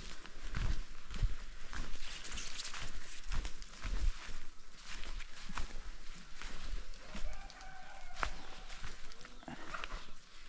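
Footsteps thud on soft soil.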